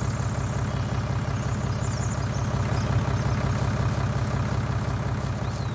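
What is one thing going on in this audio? A tractor engine rumbles steadily at low speed.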